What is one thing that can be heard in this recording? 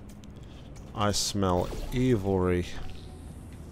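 A man speaks briefly and with animation into a close microphone.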